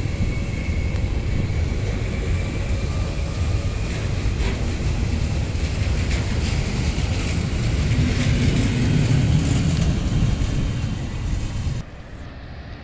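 A train rumbles loudly past close by on the rails.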